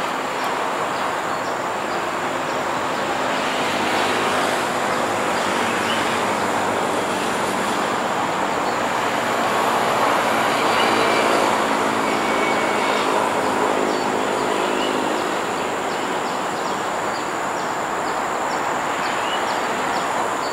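Train wheels squeal faintly on a curve.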